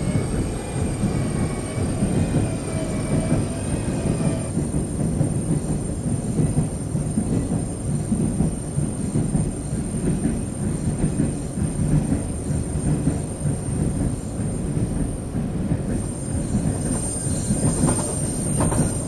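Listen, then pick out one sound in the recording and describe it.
A train carriage rumbles steadily as it runs along the track.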